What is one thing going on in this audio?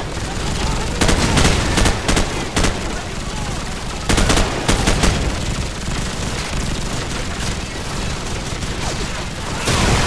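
Gunfire crackles in loud, quick bursts nearby.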